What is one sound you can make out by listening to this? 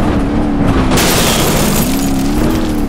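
Two cars crash together with a loud metal crunch.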